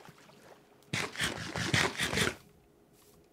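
Someone chews and munches food with a crunch.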